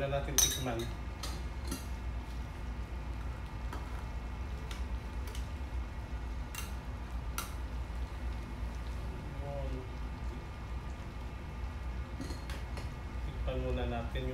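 A thick stew bubbles and simmers in a pan.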